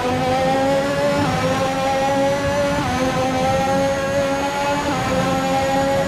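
A racing car engine screams at high revs, dipping briefly with each quick gear change.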